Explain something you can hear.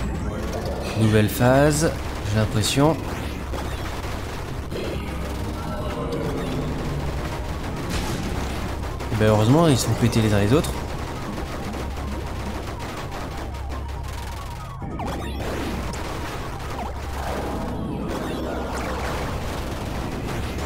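Small guns fire rapidly in a video game.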